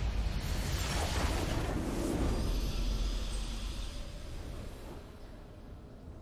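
A triumphant musical fanfare plays and slowly fades.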